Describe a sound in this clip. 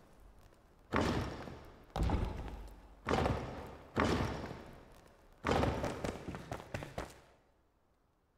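Stone blocks thump heavily into place, one after another.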